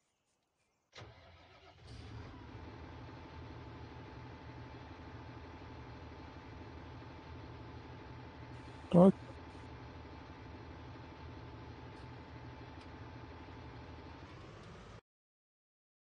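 A tractor engine idles with a steady low drone.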